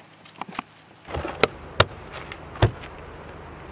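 Knocks and clicks sound from a latch being handled.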